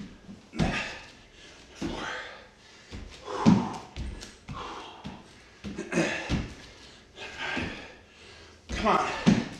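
Feet and hands thump on a wooden floor in a steady rhythm.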